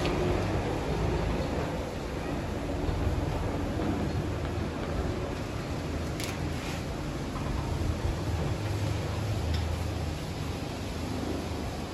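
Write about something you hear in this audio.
An eraser rubs across a whiteboard.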